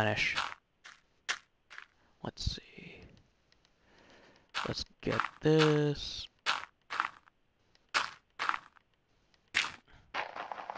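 Video game dirt blocks thud softly as they are placed.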